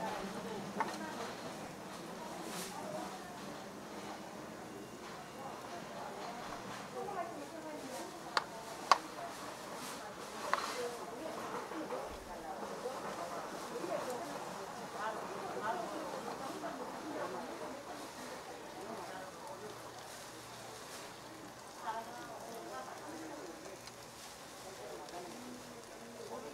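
A metal spatula scrapes and taps against a pan.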